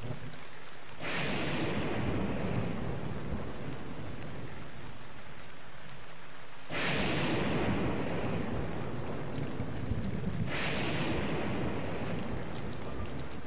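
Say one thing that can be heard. Thunder cracks and rumbles loudly several times.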